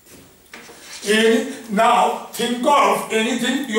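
An elderly man lectures in a calm, clear voice.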